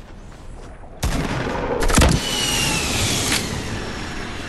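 A loud explosion booms and slowly dies away.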